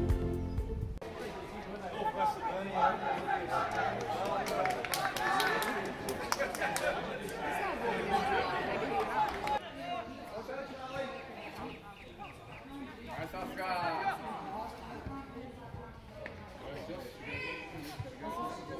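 Young players shout and call to each other across an open sports field.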